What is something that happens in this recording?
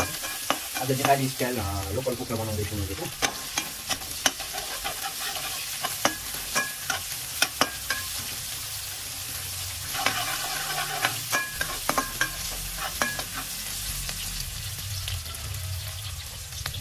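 Sliced onions sizzle in oil in a wok.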